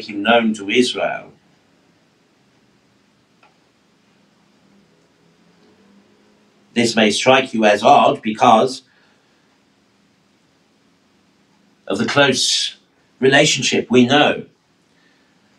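A middle-aged man speaks calmly and clearly into a microphone, pausing between phrases.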